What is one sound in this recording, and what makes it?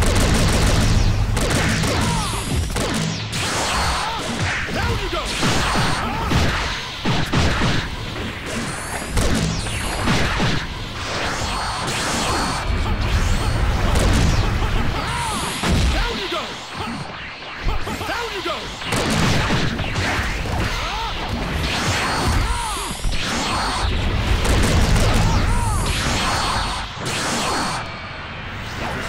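Punches and energy blasts crack and whoosh in quick bursts.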